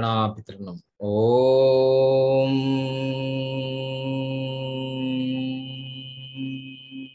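A man chants a long, steady note into a microphone.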